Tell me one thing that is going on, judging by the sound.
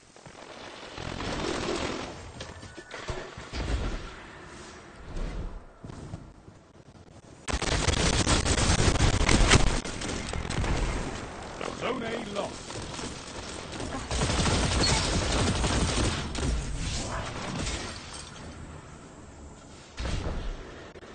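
Video game gunshots crack and boom in bursts.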